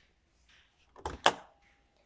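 A hand taps on a metal panel.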